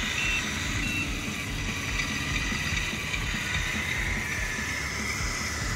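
A small electric motor whines as a model truck drives slowly across asphalt.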